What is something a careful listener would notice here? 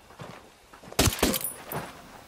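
A suppressed rifle fires a sharp shot.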